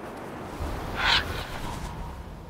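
An eagle screeches once.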